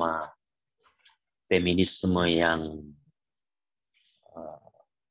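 A middle-aged man speaks calmly into a microphone in short bursts.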